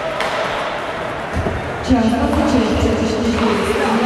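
A hockey stick slaps a puck.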